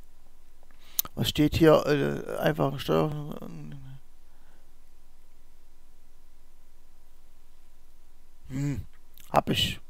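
A man speaks calmly into a microphone close by.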